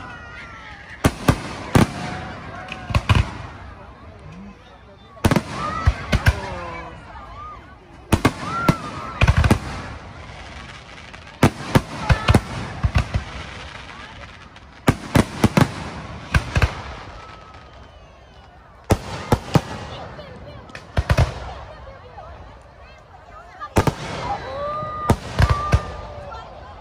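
Fireworks burst with loud sharp bangs in quick bursts.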